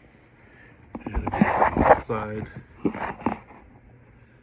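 Fabric rustles and rubs close by.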